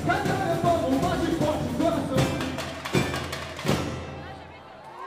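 A samba drum band plays loudly, then stops abruptly.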